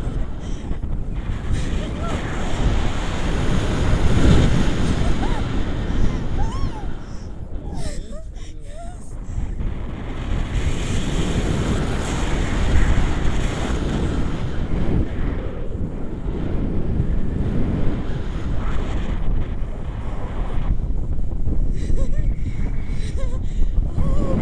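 A young woman laughs and exclaims with excitement close by.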